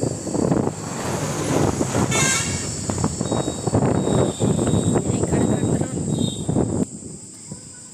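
A heavy truck rumbles loudly past close by.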